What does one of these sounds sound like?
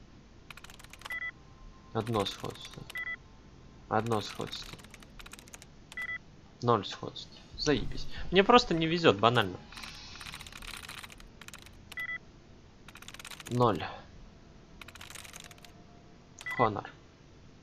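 A computer terminal beeps softly.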